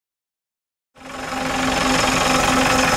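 A bus engine runs.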